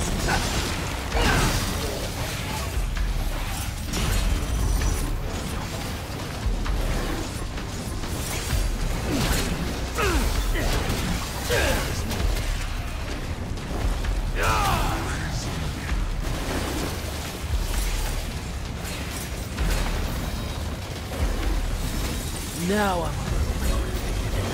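Monsters screech and growl.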